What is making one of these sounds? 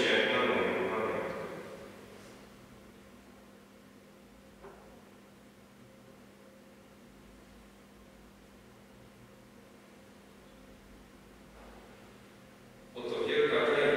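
A pipe organ plays loud chords that ring out in a large echoing hall.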